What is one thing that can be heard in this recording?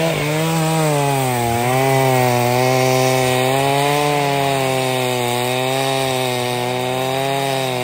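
A chainsaw cuts steadily through a thick log.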